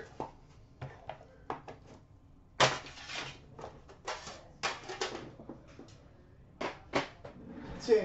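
Small cardboard boxes tap and scrape as a hand sets them down.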